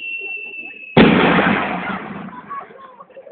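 A second handheld skyrocket launches with a rushing hiss.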